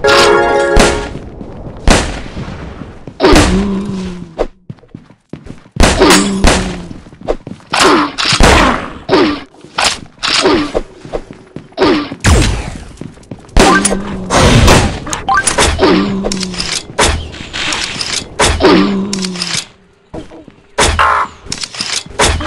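A gun fires in sharp, rapid shots.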